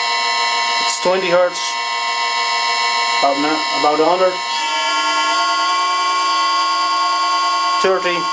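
A spinning machine shaft hums with a steady, high whine.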